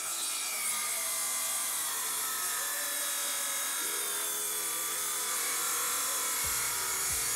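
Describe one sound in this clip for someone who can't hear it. A circular saw whines loudly as it cuts through wood.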